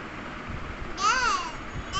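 A toddler squeals with a high voice.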